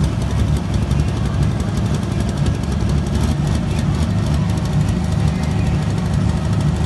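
A loud tractor engine roars steadily under heavy load.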